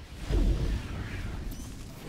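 Game electric lightning crackles.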